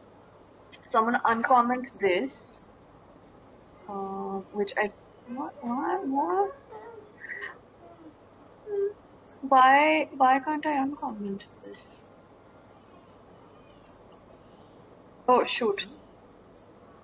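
A young woman talks casually over an online call.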